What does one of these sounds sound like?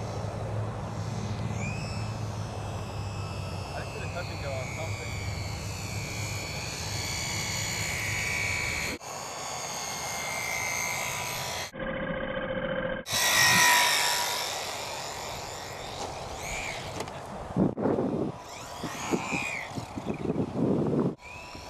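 A small model airplane engine buzzes and whines, rising and falling in pitch as it passes.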